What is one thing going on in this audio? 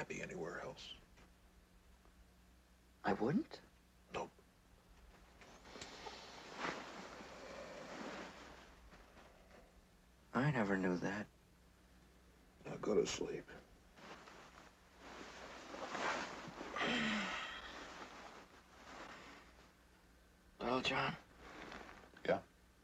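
A young man speaks in a low, strained voice.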